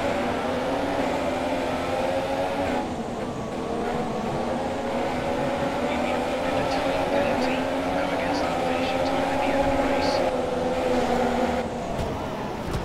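A racing car engine whines loudly as it speeds and shifts gears.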